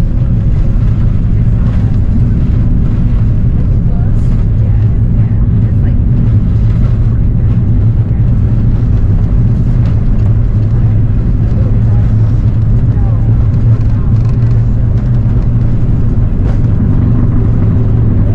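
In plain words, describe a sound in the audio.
Wheels rumble and thud on a runway.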